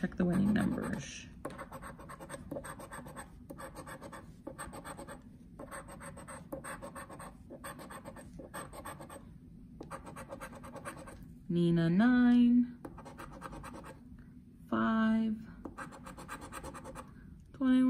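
A coin scratches rapidly against a card.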